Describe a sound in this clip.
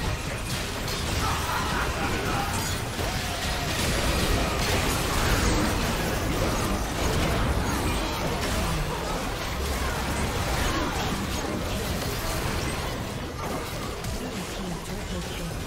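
Magic spells crackle and burst in a fast fantasy battle.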